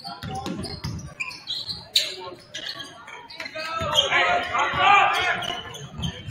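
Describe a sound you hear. Spectators murmur in the stands.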